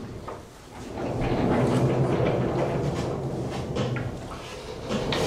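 A large chalkboard panel rumbles as it slides up.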